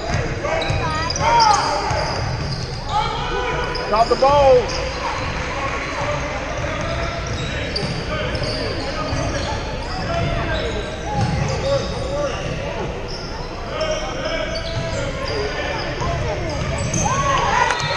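Spectators and players shout and chatter, echoing in a large hall.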